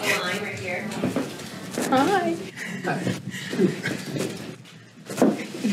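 A young woman speaks happily nearby.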